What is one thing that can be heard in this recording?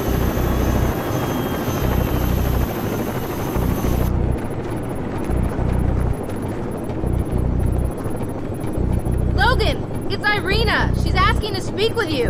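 A helicopter engine hums steadily nearby.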